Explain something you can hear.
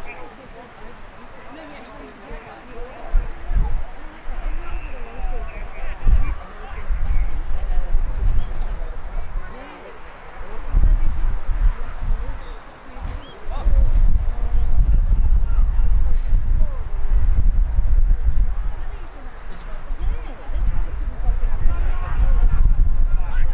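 Men shout across an open field during a football match.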